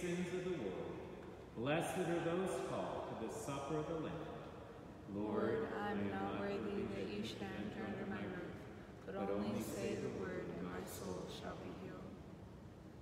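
A man chants slowly through a microphone in an echoing room.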